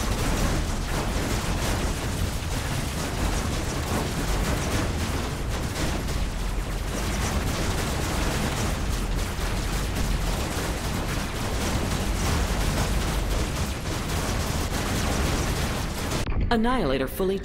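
Laser guns fire rapidly and continuously.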